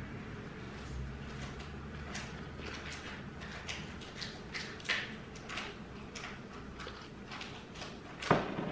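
A person slurps a hot drink in small sips.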